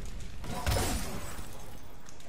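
An icy blast crackles and whooshes.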